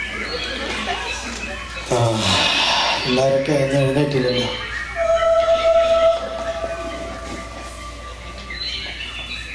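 A young man sings loudly through a microphone and loudspeakers in an echoing hall.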